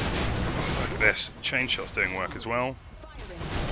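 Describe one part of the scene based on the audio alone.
A young man speaks into a headset microphone.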